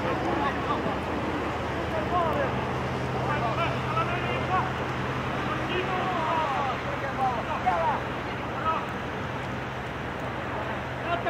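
Young men shout and call to each other from a distance outdoors.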